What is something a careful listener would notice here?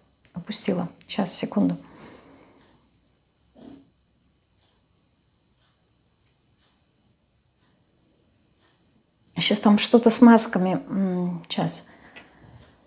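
A woman speaks calmly and close into a small microphone.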